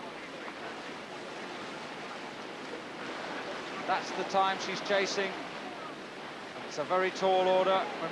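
A paddle splashes through the water.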